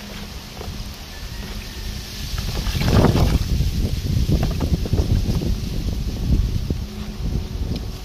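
Water splashes in a plastic basin as coconut pieces are rinsed.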